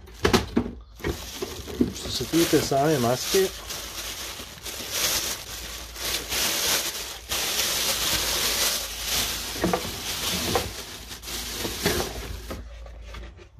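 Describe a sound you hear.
Plastic wrapping rustles and crinkles as it is pulled open.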